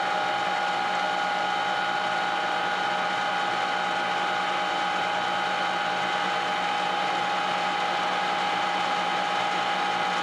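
A lathe tool cuts steel on a turning workpiece.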